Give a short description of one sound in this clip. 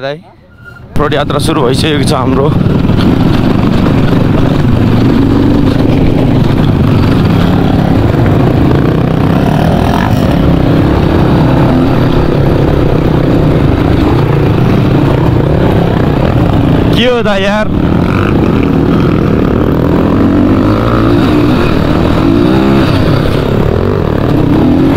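A dirt bike engine drones and revs up close.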